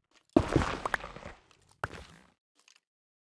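A pickaxe digs into stone blocks.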